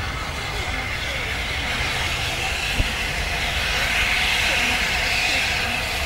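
A crowd cheers and calls out outdoors.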